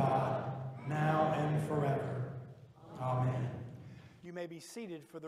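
A man speaks solemnly through a microphone.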